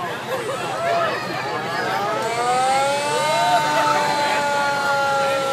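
A brass band plays nearby on a street outdoors.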